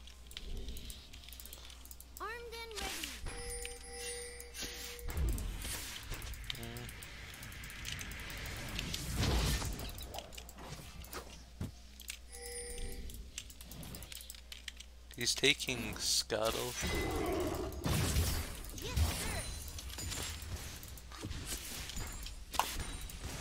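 Game characters clash with magic blasts and hits.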